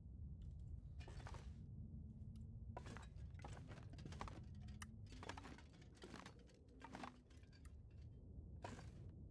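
Footsteps creak and thud slowly across a wooden floor.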